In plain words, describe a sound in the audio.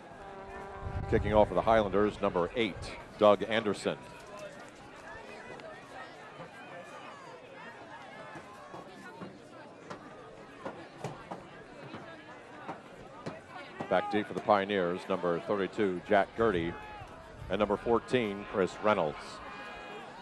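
A crowd of spectators close by cheers and shouts loudly outdoors.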